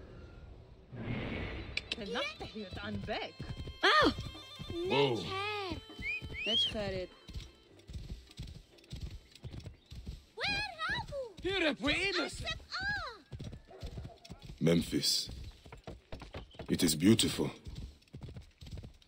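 Horse hooves clop rapidly on a dirt path.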